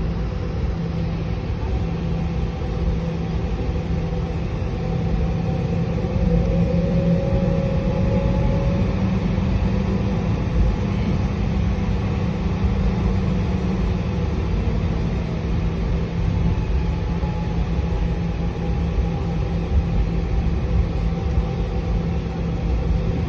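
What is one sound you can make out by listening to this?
A steady low rumble of a jet aircraft's engines fills the cabin as it taxis.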